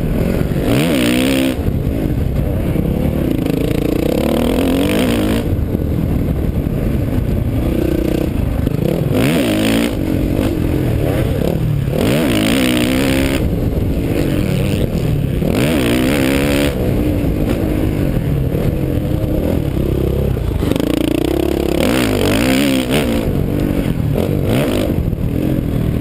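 A dirt bike engine revs loudly up and down, close by.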